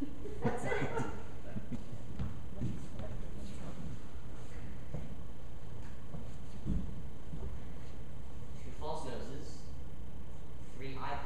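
A man speaks briefly in an echoing room.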